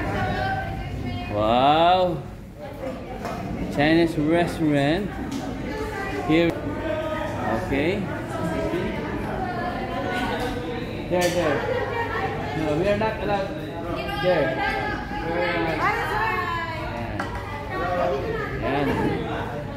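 Many people chatter in a large room.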